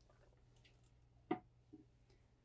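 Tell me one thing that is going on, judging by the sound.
A toilet lid thumps shut.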